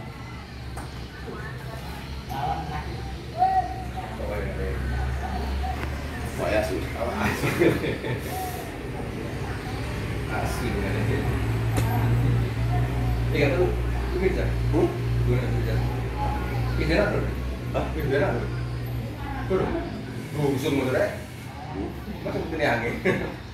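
A fan hums steadily in the background.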